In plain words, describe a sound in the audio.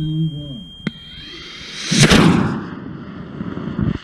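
A model rocket motor ignites with a short, loud whoosh.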